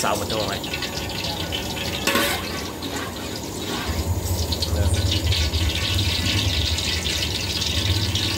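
A metal ladle scrapes against a metal bowl.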